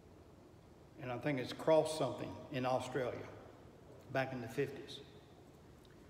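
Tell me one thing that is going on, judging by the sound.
An older man speaks calmly and thoughtfully, close by.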